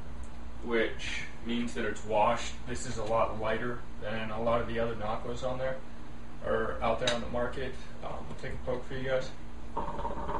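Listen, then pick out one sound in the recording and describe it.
A young man talks calmly nearby.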